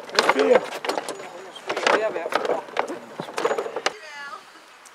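A wooden cart rattles as its wheels roll over paving.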